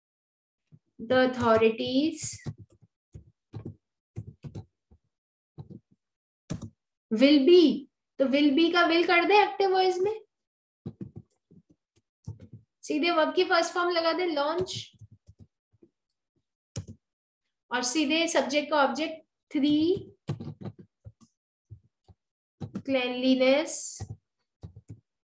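A woman speaks calmly and slowly, close to a microphone, pausing between phrases.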